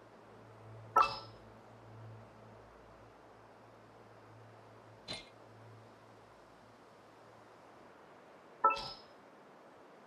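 Short bright menu chimes sound as options are selected.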